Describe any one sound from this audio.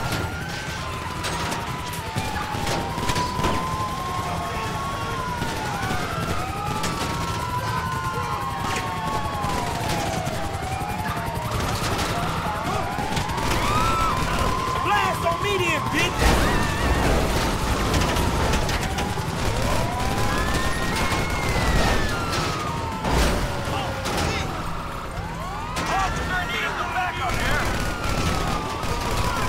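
A heavy truck engine roars as it drives fast.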